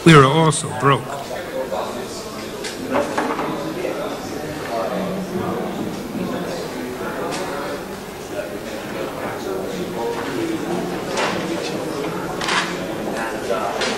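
Several people murmur in the background.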